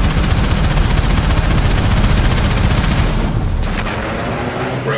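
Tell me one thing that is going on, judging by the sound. A spaceship engine roars with a deep, steady rumble.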